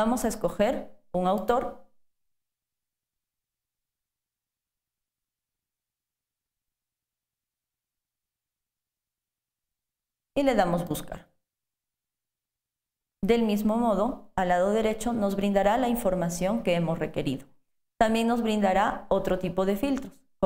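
A woman speaks calmly into a close microphone, in pauses.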